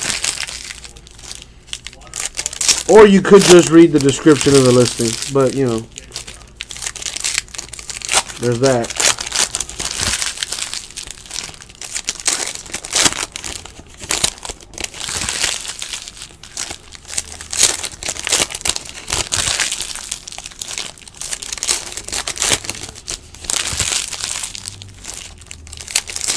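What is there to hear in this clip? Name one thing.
Foil card packs crinkle and rustle as they are torn open.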